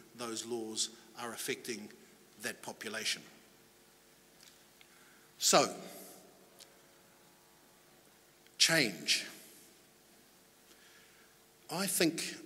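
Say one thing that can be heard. A middle-aged man speaks with pauses into a microphone in an echoing hall.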